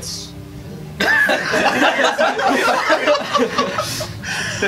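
Young men laugh loudly together.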